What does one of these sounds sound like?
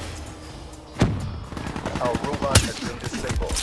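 A sniper rifle fires with a loud, sharp crack.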